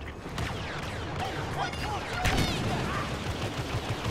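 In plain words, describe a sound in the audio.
An explosion bursts with crackling sparks.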